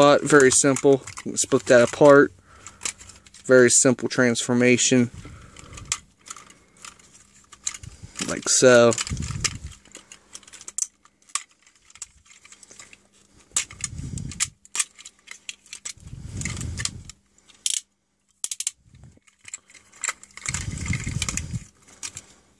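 Plastic toy parts click and snap as they are twisted.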